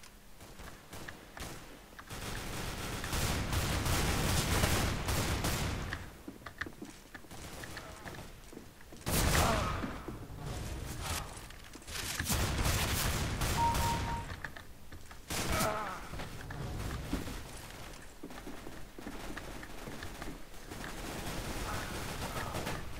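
Footsteps thud quickly on ground and wooden floors.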